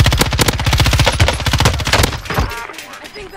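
A rifle fires in rapid bursts, close by.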